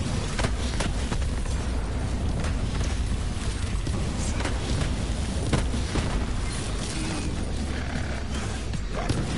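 A gun fires in rapid bursts with sharp blasts.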